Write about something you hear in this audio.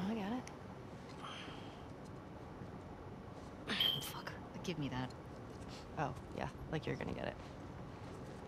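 A second young woman answers quietly.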